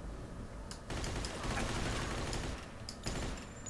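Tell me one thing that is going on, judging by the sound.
Gunfire cracks in bursts.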